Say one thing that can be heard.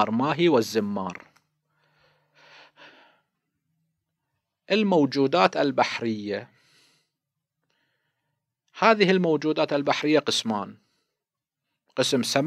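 A middle-aged man speaks calmly and deliberately into a close microphone, with pauses.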